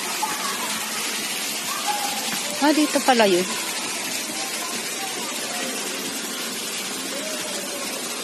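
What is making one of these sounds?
Water trickles over stones in a shallow stream.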